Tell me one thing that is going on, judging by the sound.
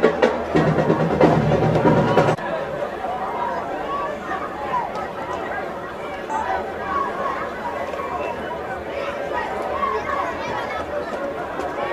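Young men shout calls across an open field.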